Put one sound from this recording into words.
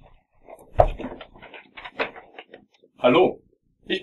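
Paper rustles in a young man's hands.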